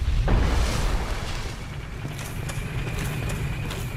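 A blade strikes a body with a heavy thud.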